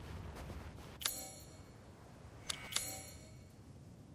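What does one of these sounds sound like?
A menu clicks open with a short chime.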